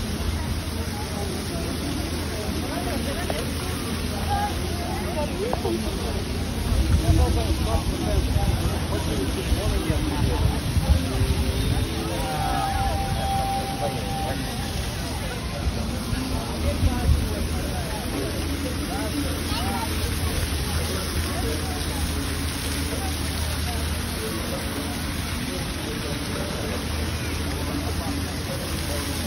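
A crowd of people murmurs and chatters nearby outdoors.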